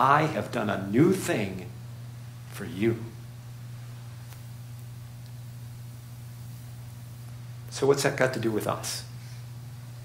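A man speaks calmly through a microphone in a large echoing hall, pausing between phrases.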